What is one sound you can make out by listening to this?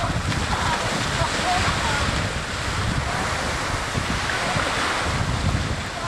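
Young men splash loudly as they run into the sea.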